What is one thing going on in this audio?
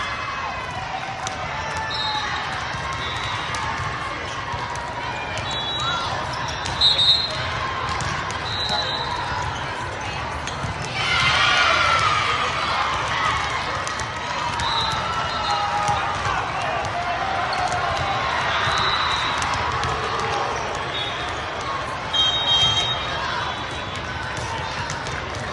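Young girls shout and cheer together close by.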